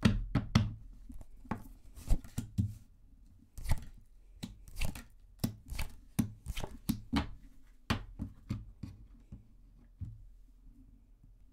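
Cards tap and slide on a wooden table close by.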